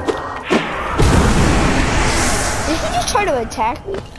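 A loud magical blast whooshes and rumbles, then fades.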